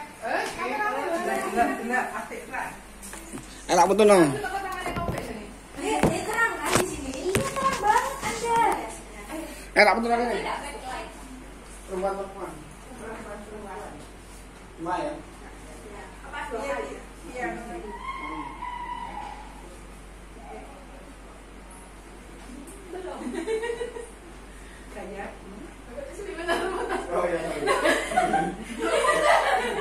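Several women talk and chatter nearby.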